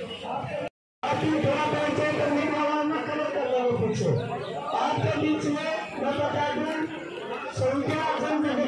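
A crowd of men talks loudly, with voices overlapping.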